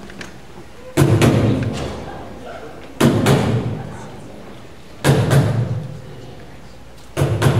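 A large choir sings short, loud chords that ring out in an echoing hall.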